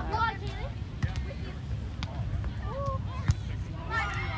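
Hands strike a volleyball with sharp slaps.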